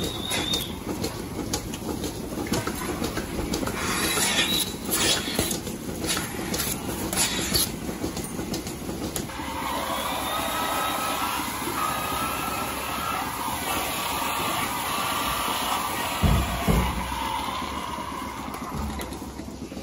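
Milking machines pulse with rhythmic clicks and hissing suction.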